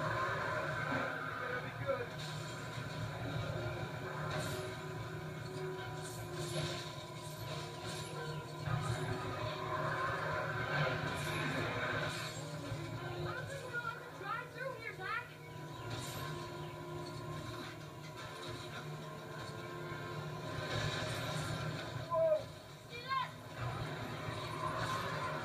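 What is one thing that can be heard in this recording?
Video game music plays steadily from a television speaker in a room.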